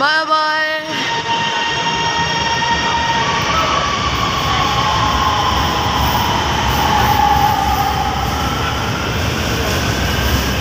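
A train rumbles along the tracks, growing louder as it pulls away.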